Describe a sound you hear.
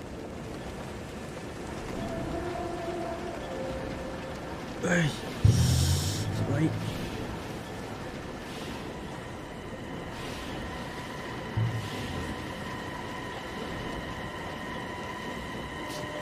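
Machinery hums steadily in a large echoing hall.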